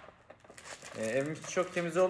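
Plastic packaging crinkles in a young man's hands.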